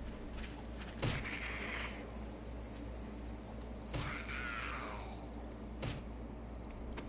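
A wooden club thuds heavily into a body, again and again.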